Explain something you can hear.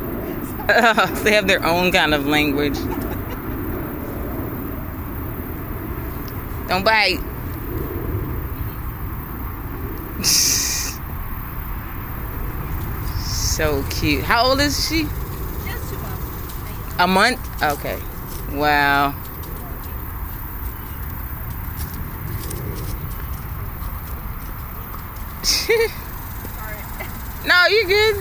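A woman talks in a high, playful voice nearby.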